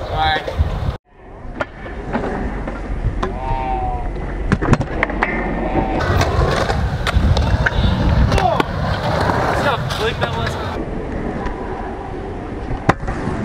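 Scooter wheels roll and grind over concrete outdoors.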